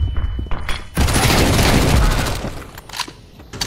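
Rapid gunshots fire in a burst.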